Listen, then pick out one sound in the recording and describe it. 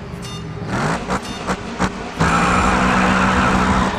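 Tyres squeal and screech on the track.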